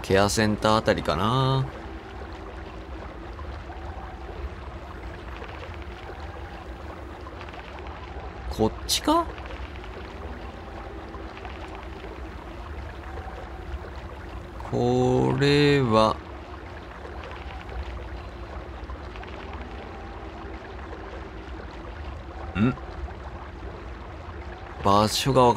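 Water splashes and churns around a small rubber boat.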